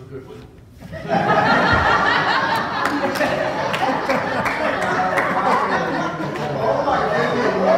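Many people in an audience talk at once.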